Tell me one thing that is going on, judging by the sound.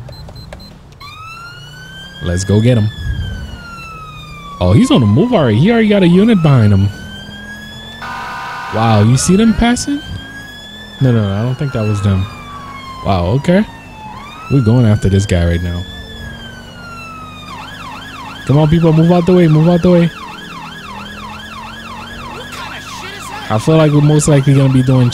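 A siren wails up and down, then switches to a fast yelp.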